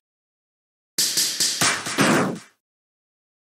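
A sharp slashing hit sound strikes.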